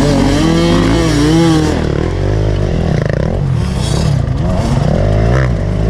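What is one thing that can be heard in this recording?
Another dirt bike engine revs hard a short way ahead.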